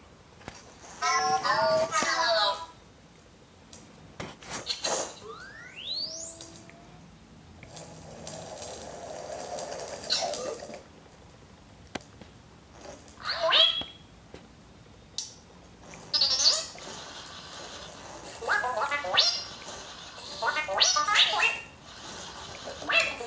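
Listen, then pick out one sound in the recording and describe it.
A toy robot chirps and beeps electronically.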